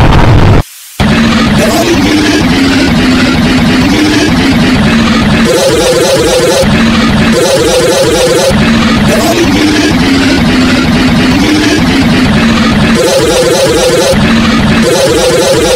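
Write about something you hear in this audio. Electronic dance music with a pulsing beat and a catchy melody plays.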